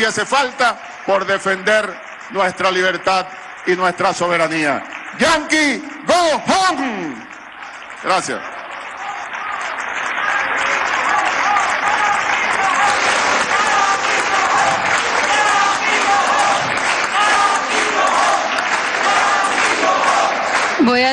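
A crowd applauds loudly in a large echoing hall.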